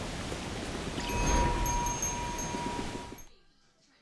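A small bell chimes with a ringing tone.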